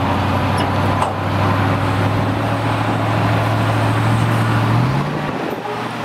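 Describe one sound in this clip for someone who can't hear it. A hydraulic pump whines as a truck's dump bed tilts up.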